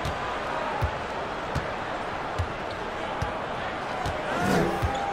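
A basketball bounces steadily on a hardwood court.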